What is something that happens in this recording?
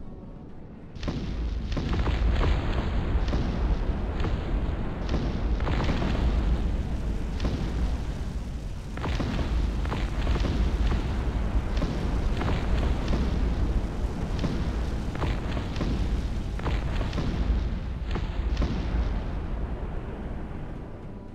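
Cannons boom again and again in a rumbling battle.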